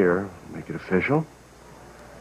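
A man speaks warmly and calmly.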